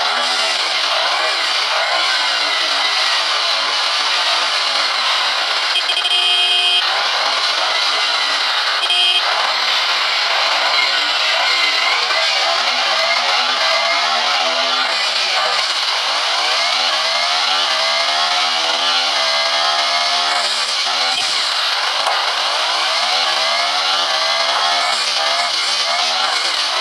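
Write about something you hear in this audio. A motorcycle engine roars steadily at speed.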